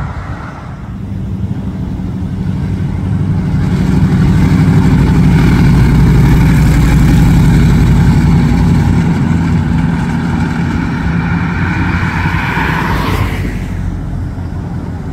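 A V8 hot rod with open headers rumbles past.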